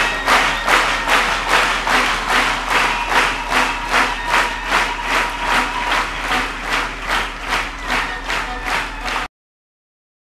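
A crowd claps in a steady rhythm in a large hall.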